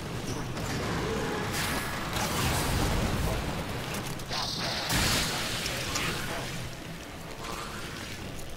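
Game weapons fire and blast with rapid bursts.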